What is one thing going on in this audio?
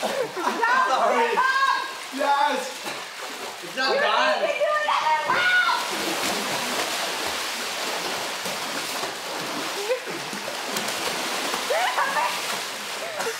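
Young men shout and cheer with excitement nearby.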